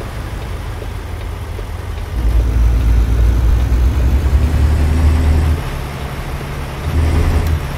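A truck engine rumbles steadily, growing louder as it pulls harder at times.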